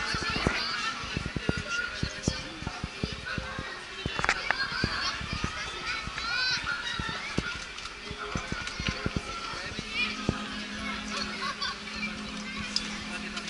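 A fairground ride whirs as it spins.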